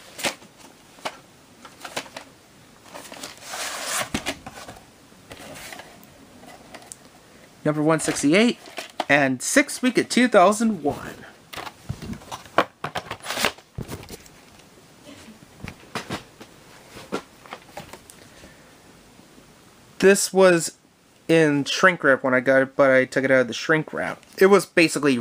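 Hands handle plastic videocassette cases, with light clicks and taps.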